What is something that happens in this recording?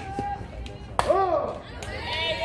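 A metal bat pings sharply against a softball.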